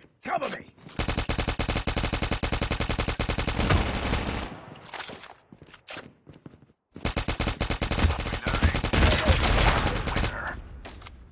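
Rapid automatic rifle fire rattles in quick bursts.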